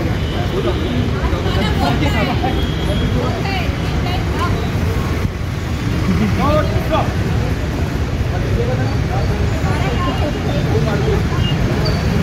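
A man speaks out loud to a group outdoors.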